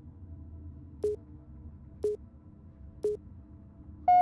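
Short electronic beeps tick off a countdown, one each second.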